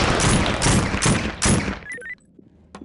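A rifle fires a quick burst of shots.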